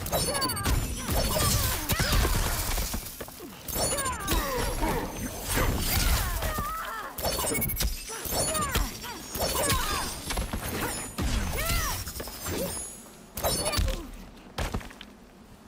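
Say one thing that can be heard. Fighters' punches and kicks land with heavy thuds and cracks.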